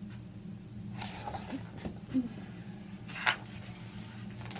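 Paper pages rustle and flap as a book is handled.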